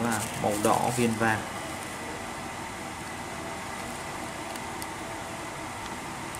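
A plastic wrapper crinkles softly as it is handled.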